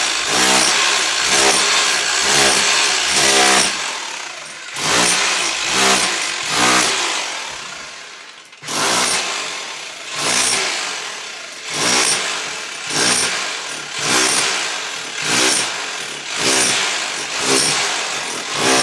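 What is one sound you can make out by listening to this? A power chisel rattles against a wall in short, repeated bursts.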